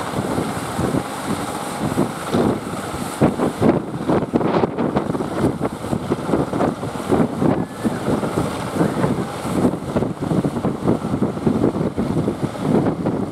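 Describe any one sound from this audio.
Waves wash and splash against a rocky shore.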